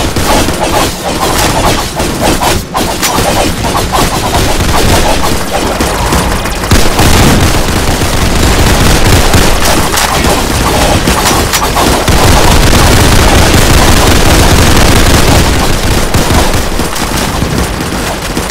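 Swords clash and blades swing in a game battle.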